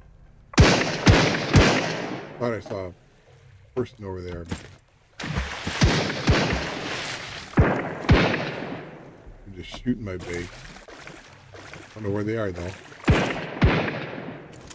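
Gunshots fire in sharp bursts, each with a ringing echo.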